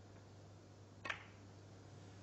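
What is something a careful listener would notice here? A cue strikes a snooker ball with a sharp click.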